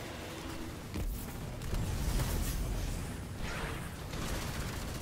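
Gunfire blasts rapidly.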